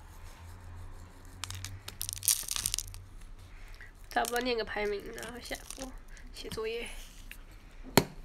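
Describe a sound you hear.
A plastic jar lid rattles and clicks.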